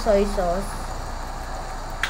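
Liquid pours into a sizzling pan.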